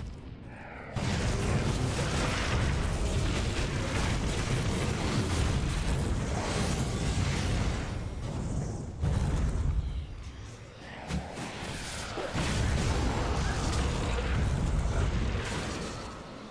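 Magic spells crackle and explode in a loud fight with monsters.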